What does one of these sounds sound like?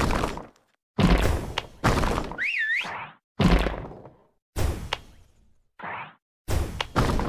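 Game bubbles pop in quick bursts with bright chiming effects.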